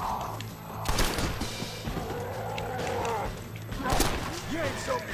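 A rifle fires with sharp bangs.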